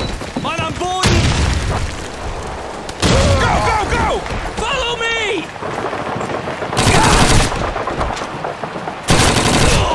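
Rapid bursts of gunfire crack loudly.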